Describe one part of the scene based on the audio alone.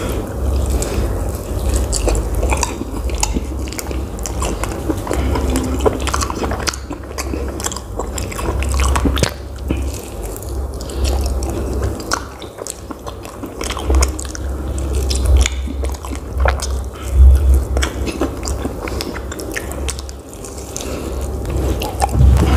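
A young man bites into crispy food with crunching sounds.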